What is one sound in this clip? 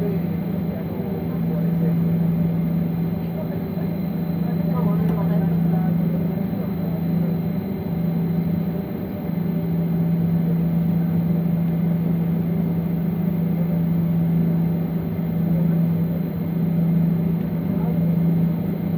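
An aircraft engine hums steadily from inside the cabin.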